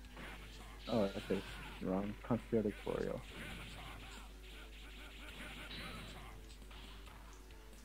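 Arcade fighting game hits and whooshes sound out in quick bursts.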